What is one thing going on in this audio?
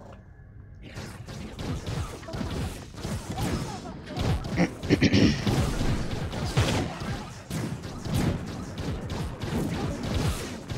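Game combat effects clash and burst loudly.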